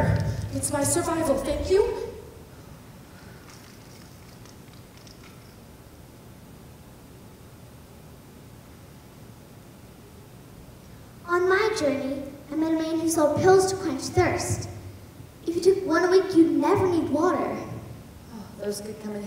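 A child speaks loudly and clearly, with pauses.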